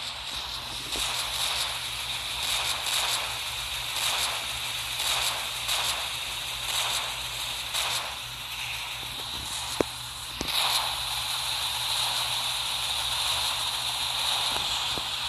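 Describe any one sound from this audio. A sword slashes and strikes in quick, repeated blows.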